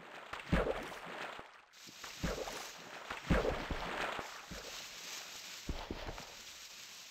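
Blocks of dirt crunch and thud as they are dug out one after another.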